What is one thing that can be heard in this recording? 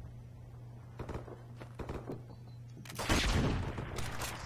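Metal parts of a gun click and clatter as it is handled.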